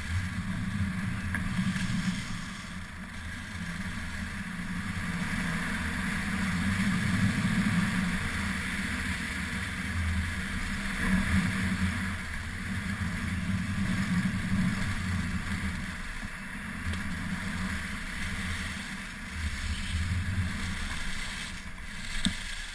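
Skis carve and scrape over groomed snow.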